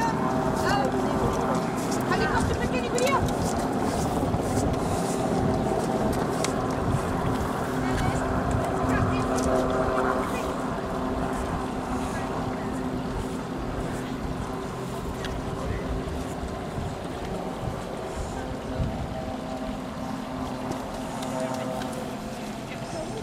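Wind blows across an open hillside.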